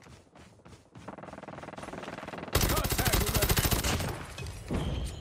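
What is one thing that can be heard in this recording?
Rapid gunfire rattles loudly in a video game.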